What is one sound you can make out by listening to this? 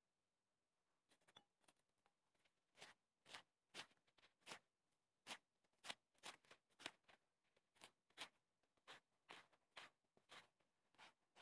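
A knife chops through peppers on a wooden board with quick, sharp knocks.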